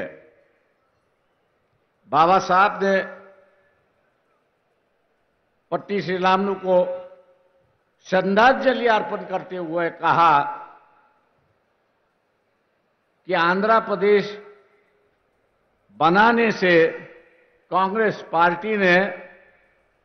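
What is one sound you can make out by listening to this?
An elderly man speaks slowly and forcefully into a microphone, with long pauses.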